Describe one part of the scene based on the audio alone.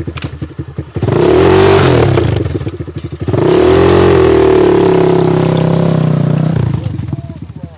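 A dirt bike engine revs loudly.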